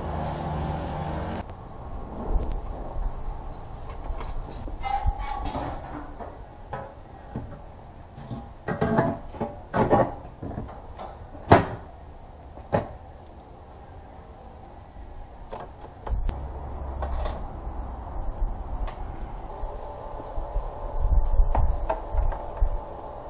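Tools clink and knock against metal and plastic parts of a car.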